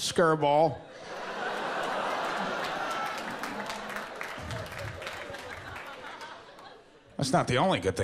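An audience laughs and claps.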